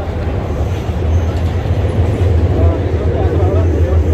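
A man talks on a phone close by.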